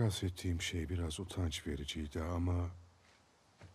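A middle-aged man speaks calmly and quietly.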